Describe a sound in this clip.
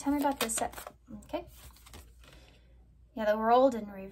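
A card slides and is laid down on a table.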